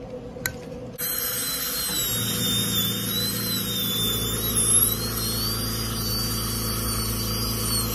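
A suction tube gurgles and slurps.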